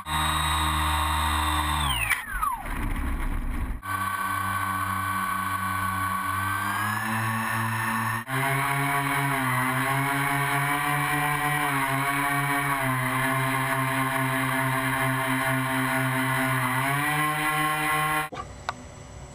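A small electric model plane motor drones steadily close by.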